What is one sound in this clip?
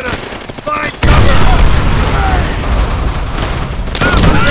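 A rifle fires loud shots nearby.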